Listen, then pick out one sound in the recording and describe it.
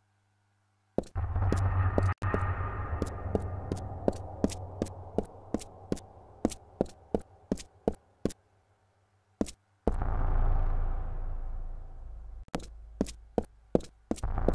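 Footsteps patter quickly on a stone floor.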